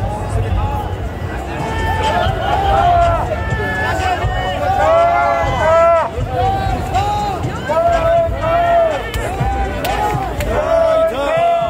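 A crowd of men chant loudly in rhythm, close by, outdoors.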